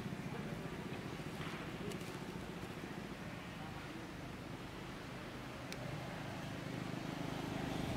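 A monkey's feet rustle and crunch on dry leaves.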